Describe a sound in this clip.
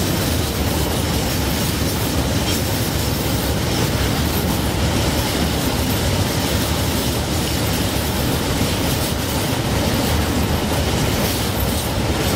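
A freight train rushes past close by with a loud steady roar.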